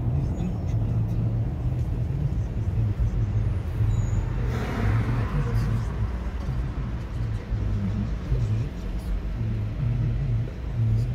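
Traffic drives slowly along a city street.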